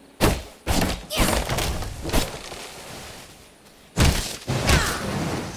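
Magic blasts crash and hiss in sudden loud bursts.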